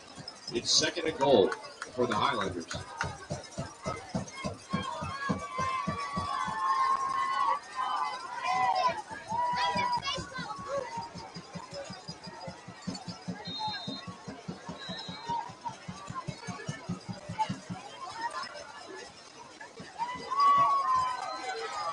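A crowd cheers and shouts outdoors at a distance.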